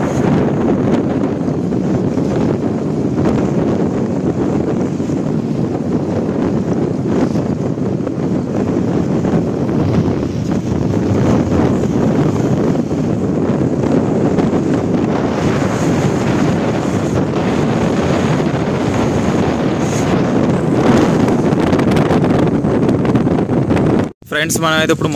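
Strong wind gusts outdoors and buffets the microphone.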